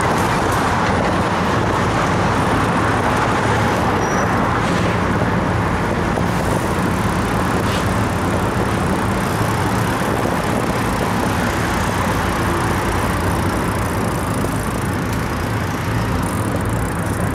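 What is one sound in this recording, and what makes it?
Cars and trucks drive past on a busy road nearby.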